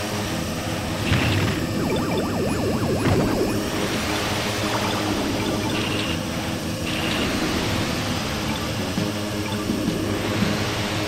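Futuristic racing engines whine and roar steadily at high speed.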